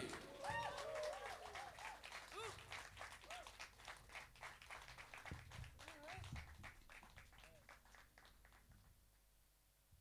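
A band plays live music with drums, guitar and keyboard, and the sound fades out.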